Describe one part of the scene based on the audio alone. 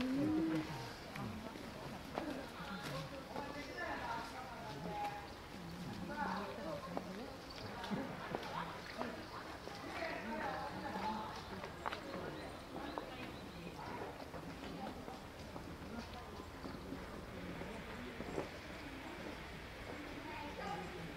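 A crowd of adults chats in the distance outdoors.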